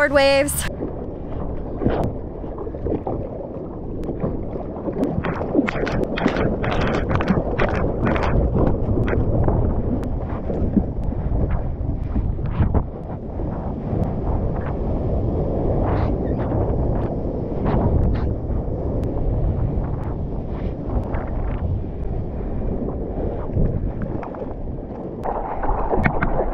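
Hands paddle and splash in the water.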